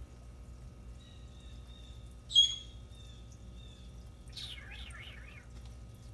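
A small turtle scrapes softly over bark and wood chips.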